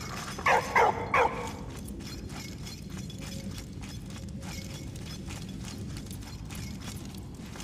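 Footsteps tread softly on a wooden floor.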